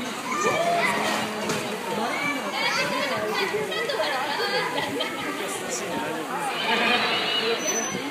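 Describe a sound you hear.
A small child babbles nearby.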